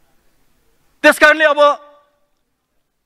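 A man speaks loudly into a microphone.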